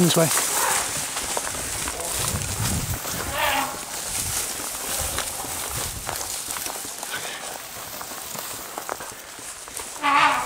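Branches and leaves brush and rustle against the walker.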